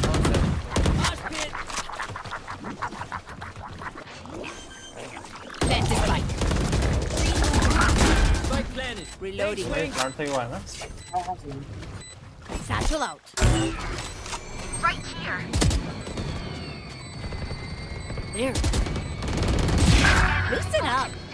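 Rapid gunfire bursts sound from a video game.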